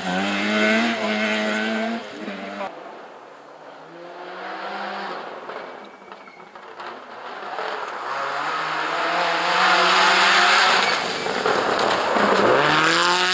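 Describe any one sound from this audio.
A rally car engine roars and revs loudly, rising and falling in pitch as the car shifts gears.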